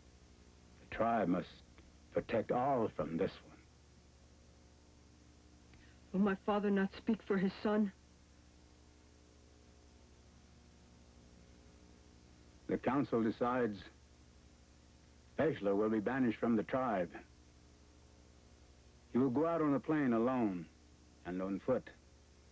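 An older man speaks slowly and calmly, close by, with pauses between phrases.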